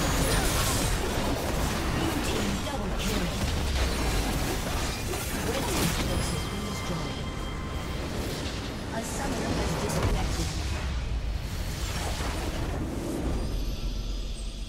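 Spell effects crackle, whoosh and clash in a busy fight.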